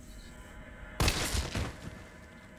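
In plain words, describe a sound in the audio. A gunshot fires loudly once.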